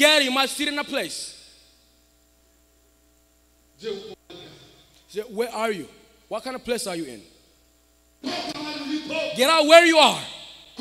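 A man speaks loudly and with animation into a microphone over loudspeakers in a large echoing hall.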